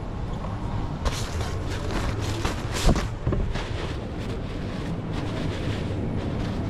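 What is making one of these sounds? Paper towels rustle as hands pull and crumple them.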